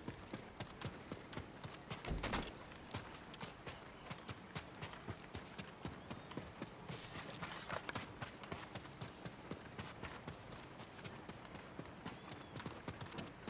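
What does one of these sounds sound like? Footsteps run quickly over ground and dry leaves.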